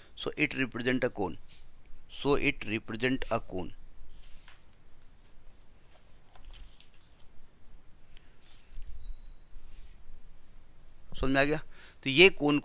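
A middle-aged man speaks calmly close by, with long pauses.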